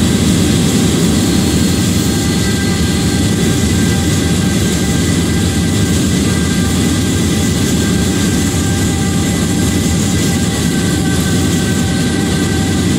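Train wheels clatter on the rails.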